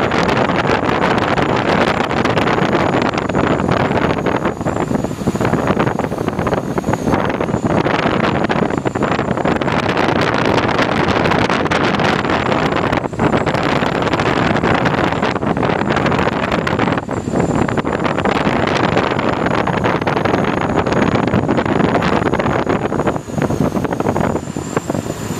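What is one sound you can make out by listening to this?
Wind roars past the plane in a rushing hiss.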